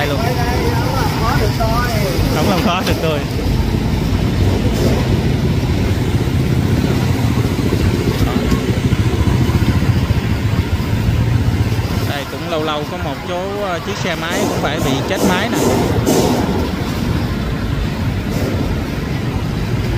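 Water splashes and sloshes as motorbikes wade through a flood.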